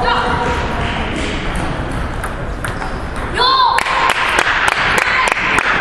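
A table tennis ball clicks back and forth on bats and a table in a large echoing hall.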